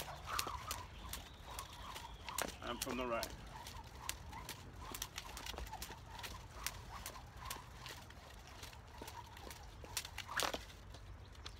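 A jump rope slaps the wet pavement in a quick, steady rhythm.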